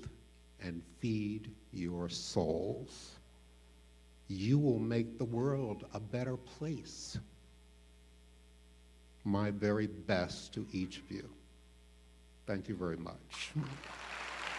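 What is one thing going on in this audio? An elderly man speaks slowly and warmly into a microphone in a large hall.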